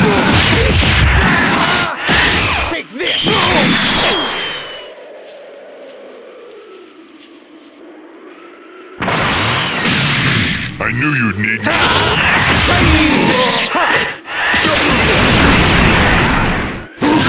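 Punches and kicks land with heavy thuds in a fight.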